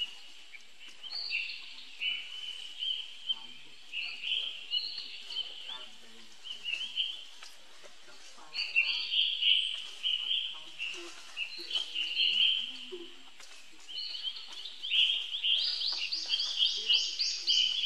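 Dry leaves rustle as monkeys tussle on the ground.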